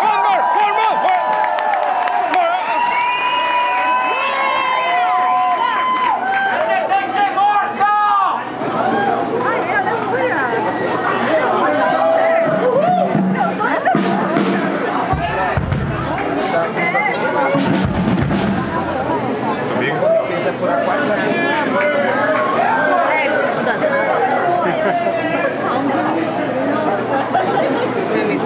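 Electric guitars play loud, distorted rock music through amplifiers.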